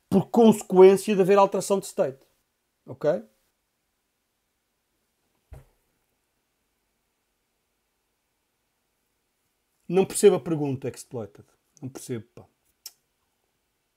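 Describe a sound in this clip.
A man speaks close to a microphone, with pauses.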